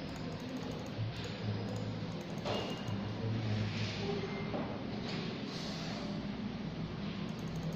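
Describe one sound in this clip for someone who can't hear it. Knitting needles click softly against each other.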